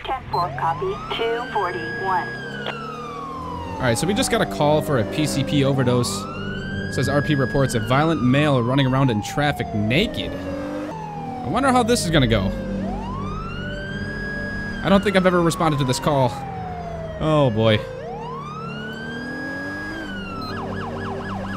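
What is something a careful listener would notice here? A police siren wails, rising and falling over and over.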